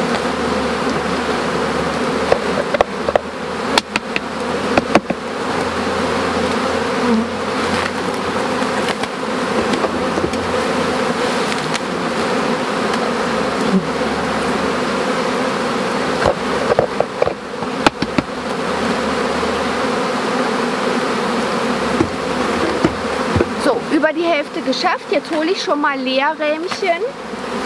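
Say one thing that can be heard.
Bees buzz steadily in a dense swarm close by.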